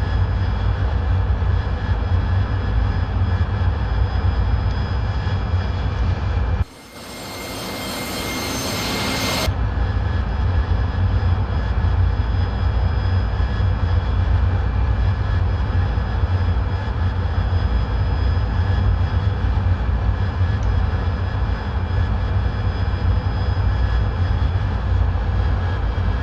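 A jet engine rumbles deep and steady, heard from inside a cockpit.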